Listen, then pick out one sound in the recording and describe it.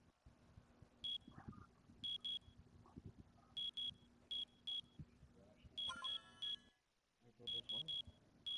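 Short high electronic beeps chime in quick pairs as game results tally up.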